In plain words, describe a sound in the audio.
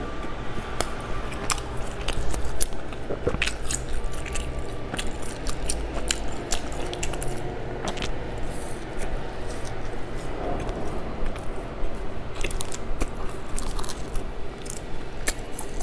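A young woman crunches crisp snacks close to a microphone.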